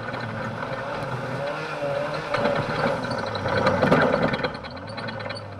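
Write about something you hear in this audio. Gravel and dirt rattle loudly against the underside of a car.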